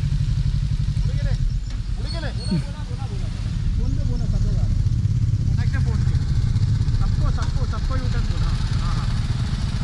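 A man talks casually, heard close through a helmet microphone.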